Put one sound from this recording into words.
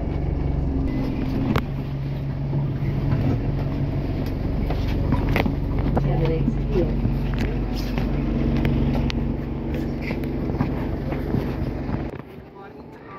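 A bus engine hums and rumbles steadily nearby.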